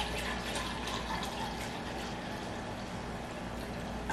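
Water pours into a glass jug.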